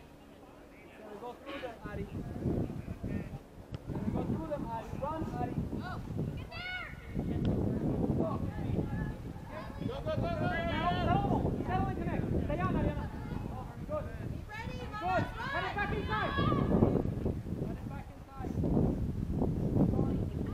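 Young girls shout and call to each other across an open outdoor field.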